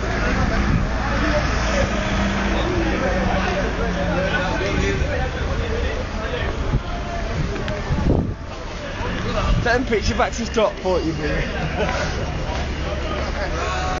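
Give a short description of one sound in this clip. A crowd of men shout and talk outdoors nearby.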